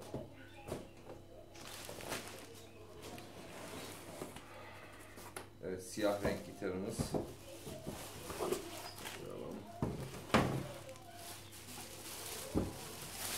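Plastic wrap crinkles and rustles as it is handled.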